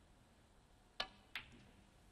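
A snooker cue strikes the cue ball.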